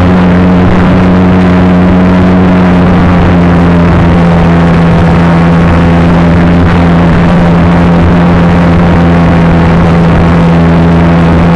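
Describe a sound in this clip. A small model aircraft motor whines steadily and loudly, close up.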